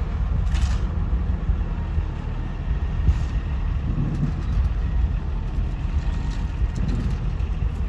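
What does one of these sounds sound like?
Shovels scrape across asphalt.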